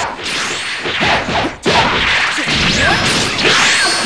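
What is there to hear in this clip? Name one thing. Blows land with heavy thuds.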